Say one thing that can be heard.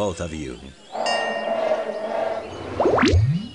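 A magic chime shimmers and rings.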